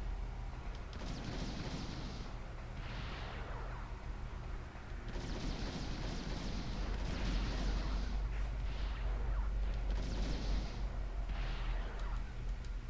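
Gunshots fire in short bursts, echoing in a hard metal space.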